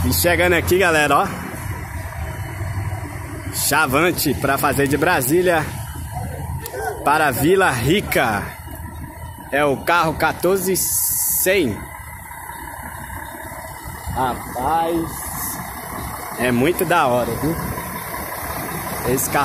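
A bus engine idles nearby.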